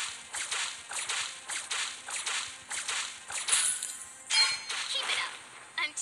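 Game hero attacks land with sharp repeated whooshing hits.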